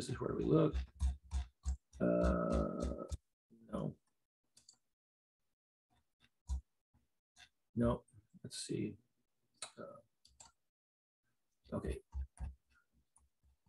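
An elderly man talks calmly through a computer microphone, in short bursts with pauses.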